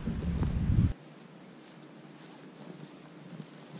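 Footsteps crunch through deep snow.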